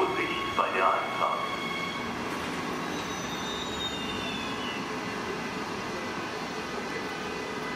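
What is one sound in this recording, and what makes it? A passenger train rolls out of the station with a steady rumble.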